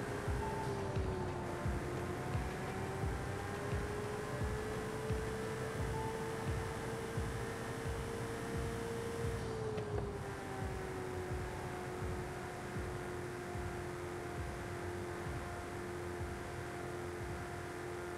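Tyres roar over a rough road surface.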